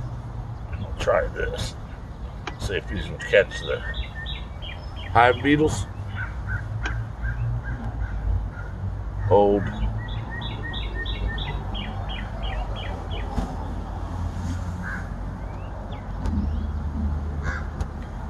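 A beekeeper's bellows smoker puffs air.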